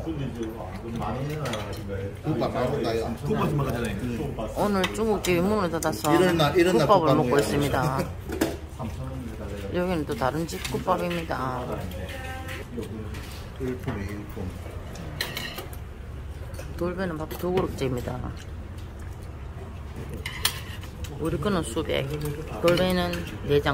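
Chopsticks and spoons clink against bowls and dishes.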